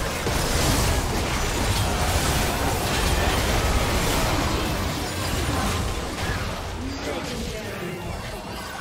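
Video game spell effects whoosh, crackle and boom in a busy fight.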